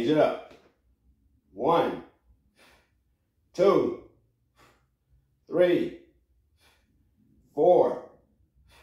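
An older man counts aloud, close by, in short bursts every two seconds.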